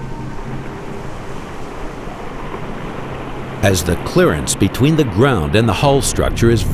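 Water sloshes and laps steadily.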